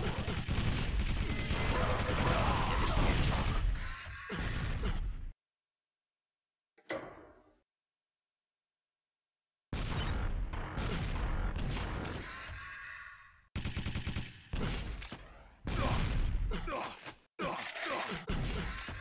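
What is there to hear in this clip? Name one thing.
Rockets whoosh and explode with loud booms.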